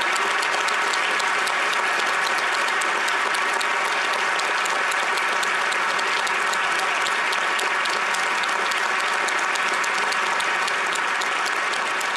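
A large crowd applauds loudly and steadily in a large echoing hall.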